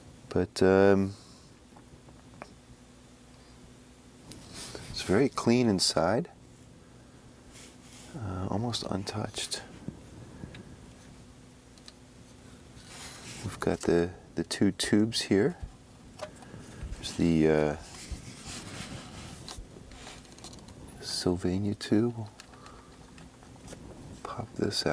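Metal parts of a small device click and rattle as it is handled.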